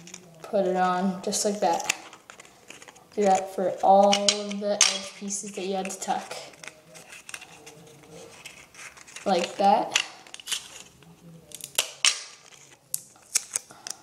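Paper crinkles and rustles as it is folded.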